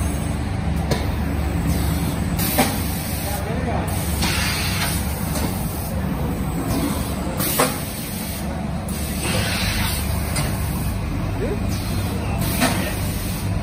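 Metal parts of a packing machine clatter and knock now and then.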